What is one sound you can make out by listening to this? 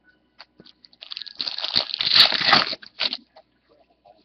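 A foil card pack crinkles and tears as it is opened.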